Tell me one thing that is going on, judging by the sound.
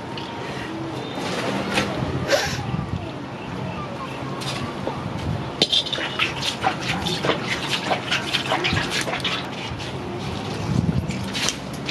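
A knife cuts through raw meat with soft wet slicing sounds.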